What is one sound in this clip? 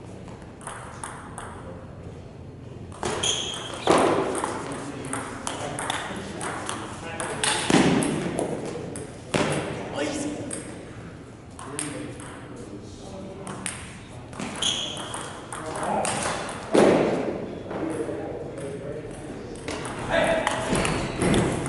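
A ping pong ball clicks back and forth between paddles and a table in a rally.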